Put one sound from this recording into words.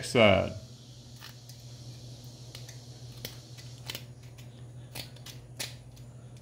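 A knife blade scrapes and clicks against metal threads.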